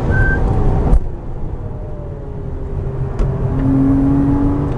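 A racing car engine drops to a lower drone as the car brakes for a corner.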